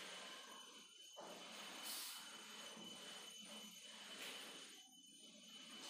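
An eraser rubs across a whiteboard.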